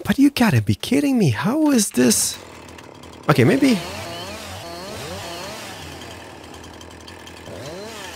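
A chainsaw engine revs up and down sharply.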